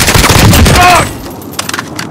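An assault rifle fires a rapid burst of shots.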